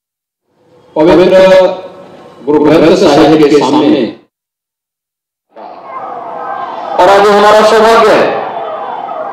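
A middle-aged man speaks forcefully into a microphone, with echo.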